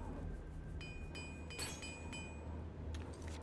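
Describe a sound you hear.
Short metallic hammer clinks ring out a few times.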